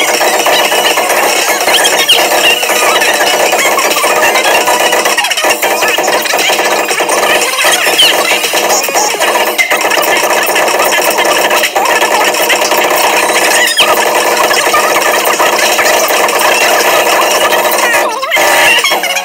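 Drumsticks beat rapidly on a large drum.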